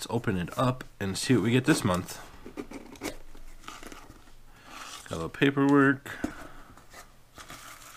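Cardboard scrapes and rubs as a box is opened.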